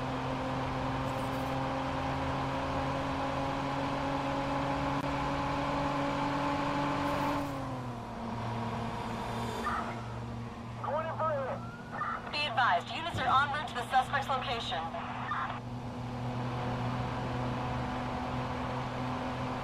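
A car engine roars steadily at speed, dropping in pitch briefly as it shifts gear.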